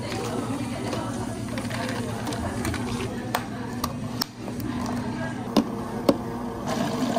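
Ice cubes clink in plastic cups.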